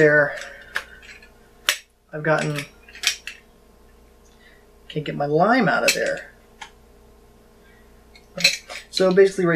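A plastic hand press clicks and clacks as it is handled.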